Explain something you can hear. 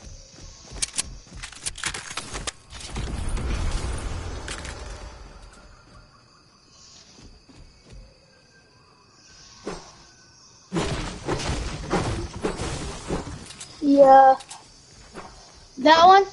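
Footsteps patter quickly over grass and wooden boards.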